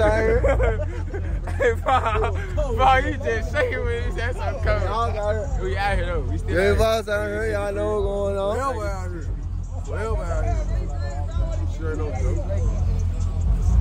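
Young men laugh and talk close by.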